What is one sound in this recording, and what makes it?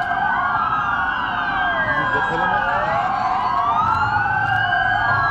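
A fire engine's siren wails loudly, rising and falling.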